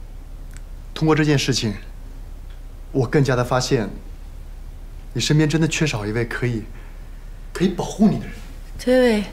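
A man speaks calmly and slowly nearby.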